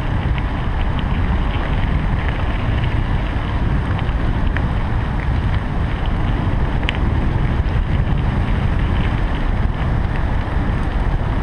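Bicycle tyres roll over a gravel path with small rattles and clicks.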